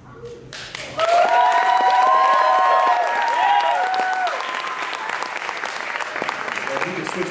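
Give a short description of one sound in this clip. A crowd cheers and screams loudly in a large hall.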